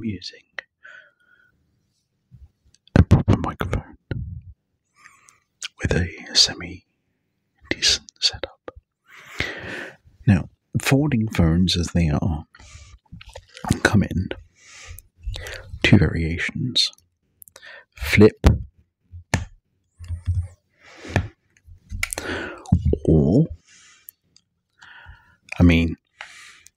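A man speaks softly and closely into a microphone.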